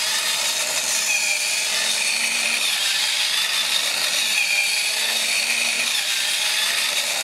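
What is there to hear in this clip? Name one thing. A toy robot's motor whirs steadily as it walks.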